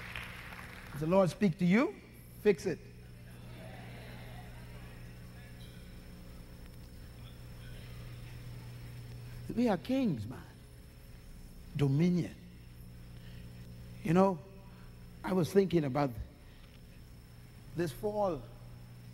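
A man speaks slowly and forcefully, as in a sermon, with long pauses.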